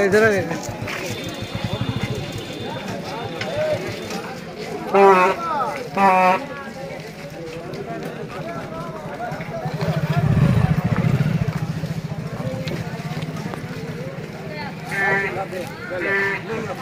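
Men talk excitedly in the background.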